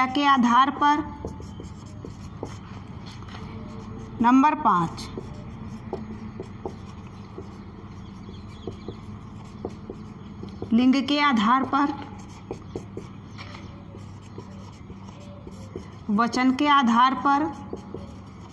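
A woman speaks in short phrases, with pauses between them.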